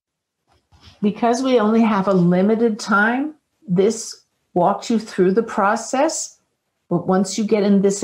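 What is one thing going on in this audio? A woman speaks calmly and slowly into a microphone, heard as if over an online call.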